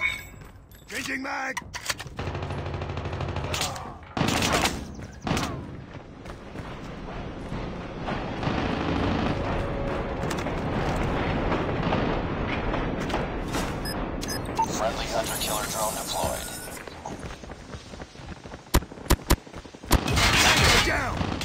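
Gunshots ring out in short, rapid bursts.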